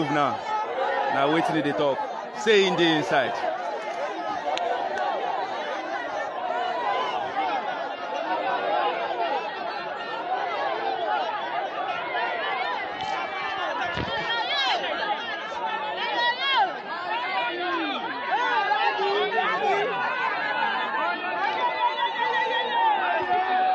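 A large crowd shouts and cheers excitedly up close, outdoors.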